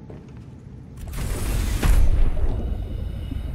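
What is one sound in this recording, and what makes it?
Water splashes loudly as something plunges in.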